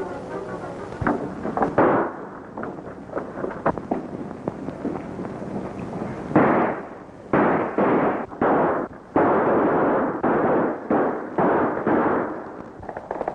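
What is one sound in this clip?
A man fires a revolver in sharp, echoing shots.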